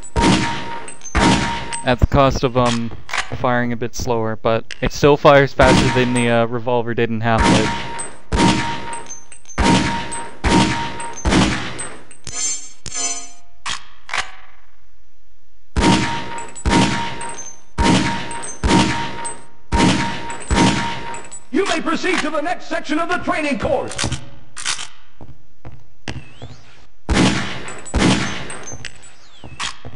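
Gunshots ring out in quick succession with a loud echo.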